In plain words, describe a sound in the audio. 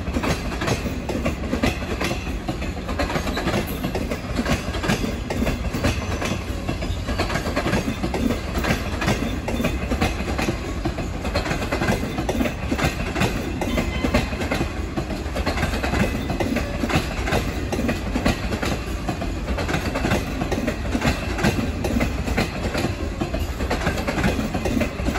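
A passenger train rumbles steadily along the tracks nearby.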